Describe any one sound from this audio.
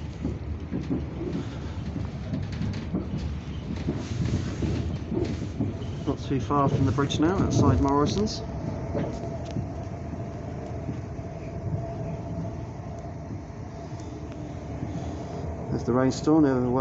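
A train rumbles and rattles along the tracks at speed.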